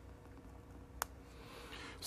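A switch clicks once.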